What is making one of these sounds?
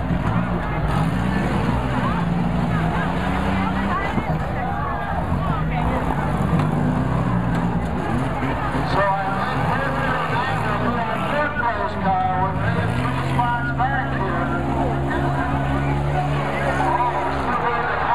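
A large crowd cheers and shouts in the distance.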